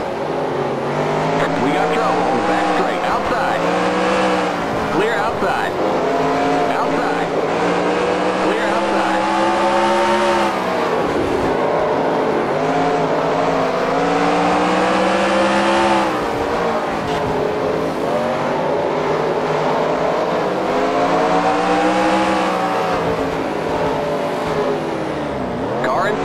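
A race car engine roars steadily, its pitch rising and falling as it speeds up and slows down.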